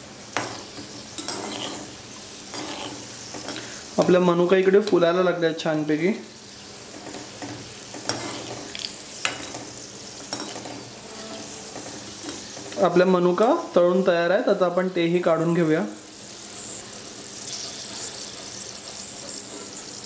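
A metal spoon scrapes and clinks against a metal pan.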